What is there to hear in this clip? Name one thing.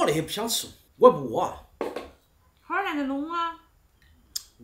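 A young man answers calmly nearby.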